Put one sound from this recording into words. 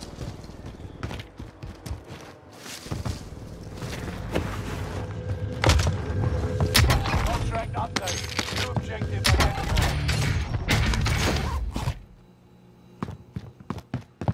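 Footsteps thud across a hard floor.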